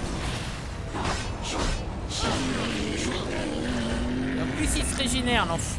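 A fiery explosion bursts with a loud roar.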